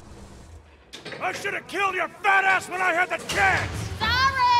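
A man speaks with animation.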